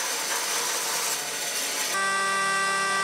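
A band saw hums while cutting through wood.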